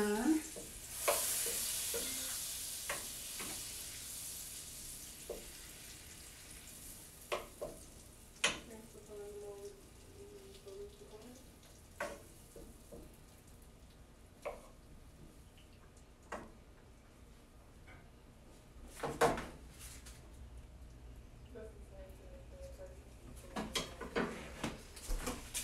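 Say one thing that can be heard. Butter sizzles softly in a hot pan.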